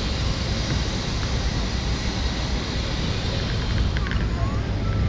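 Cars drive past at a street corner.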